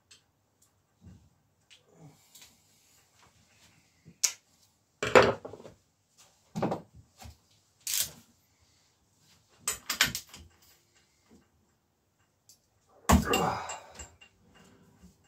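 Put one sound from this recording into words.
Metal tools clank and knock against a bicycle part.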